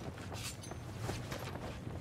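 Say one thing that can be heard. A heavy blade swings through the air with a whoosh.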